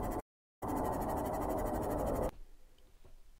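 Deep underwater rumbling and bubbling hiss plays loudly, then cuts off abruptly.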